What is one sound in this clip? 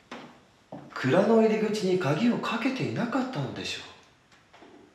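A young man speaks tensely and close by.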